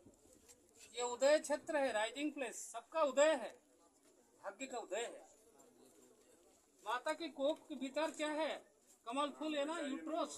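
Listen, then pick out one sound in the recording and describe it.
A man talks loudly and animatedly close by.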